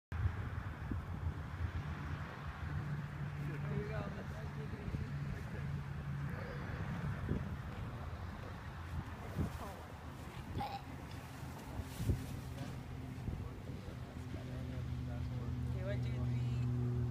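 Wind rumbles low and steadily outdoors.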